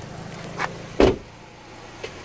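A car door thuds shut nearby.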